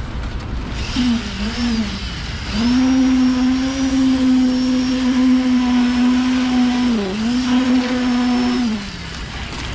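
A concrete vibrator motor hums loudly, its pitch dipping now and then.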